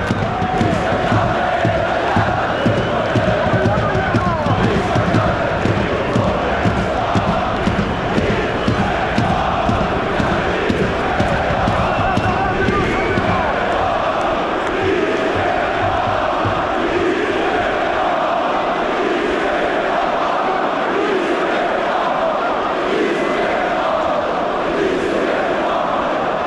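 A large crowd chants loudly in unison in a big echoing stadium.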